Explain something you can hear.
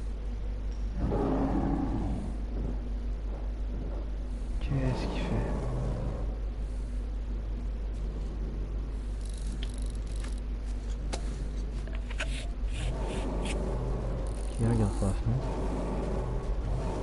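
A large creature growls and snarls nearby.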